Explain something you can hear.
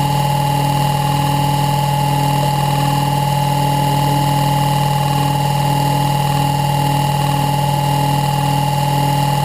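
Wind turbine blades whir and whoosh as they spin steadily.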